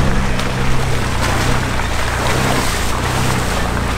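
Tyres splash and squelch through mud.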